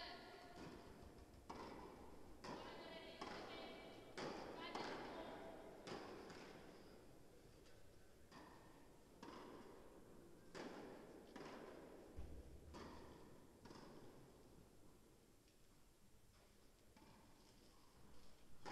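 Tennis balls are struck with rackets and bounce, echoing in a large indoor hall.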